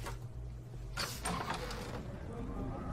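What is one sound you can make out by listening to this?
Heavy wooden doors swing open.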